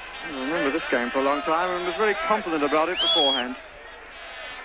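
A large crowd chants and sings loudly in a stadium.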